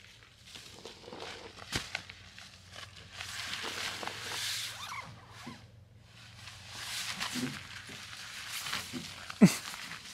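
A sleeping pad rustles and crinkles as it is handled.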